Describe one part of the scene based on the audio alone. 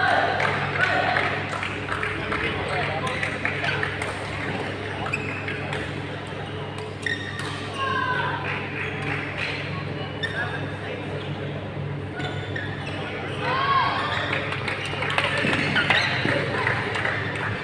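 Shuttlecocks are struck with rackets, with sharp pops.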